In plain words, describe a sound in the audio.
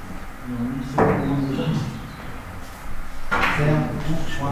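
Billiard balls knock together and bounce off the cushions.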